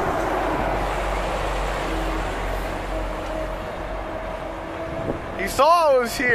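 A heavy truck engine rumbles close by and fades away down the road.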